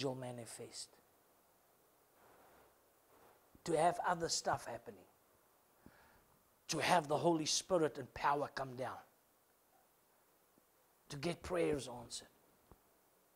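A middle-aged man speaks with animation in short bursts, echoing slightly in a room.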